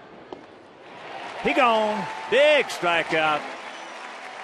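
A crowd cheers loudly.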